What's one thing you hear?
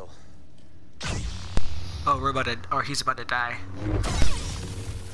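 A lightsaber ignites with a sharp buzzing hum.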